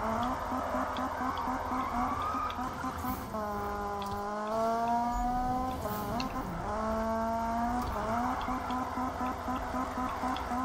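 Tyres squeal as a car drifts through bends.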